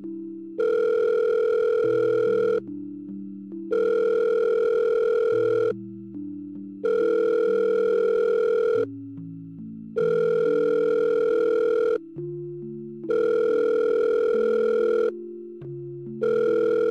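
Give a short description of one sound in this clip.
A phone rings in repeated long bursts with short pauses between them.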